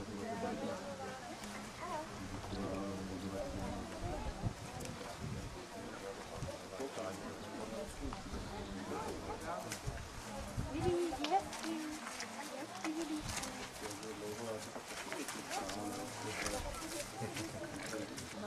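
A horse's hooves thud softly on soft ground.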